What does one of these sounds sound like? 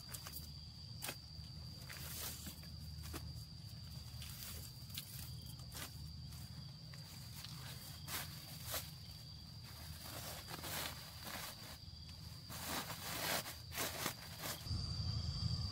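Dry lemongrass stalks rustle and crackle as they are handled.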